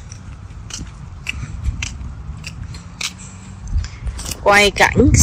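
Footsteps walk steadily on a paved path.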